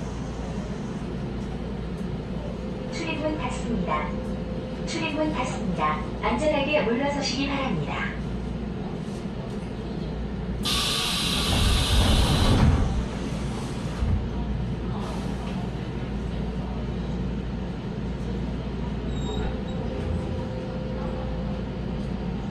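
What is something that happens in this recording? An electric commuter train hums while standing at a platform.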